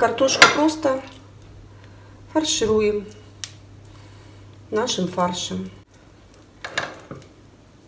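A spoon scrapes and taps against a ceramic bowl.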